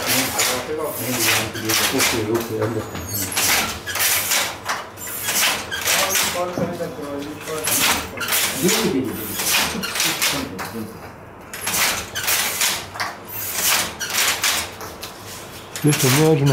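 A handloom clatters with a loud, rhythmic clacking.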